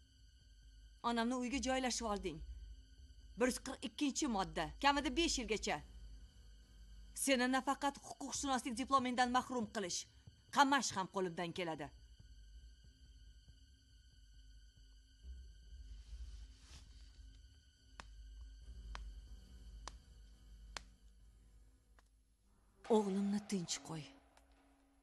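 A middle-aged woman speaks firmly and with emphasis, close by.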